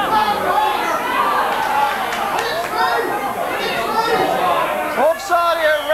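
Young men shout to each other across an open football pitch.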